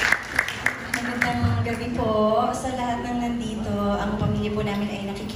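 A woman sings into a microphone through loudspeakers in a large room.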